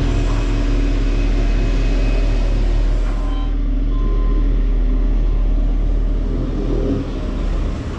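A telehandler engine runs nearby.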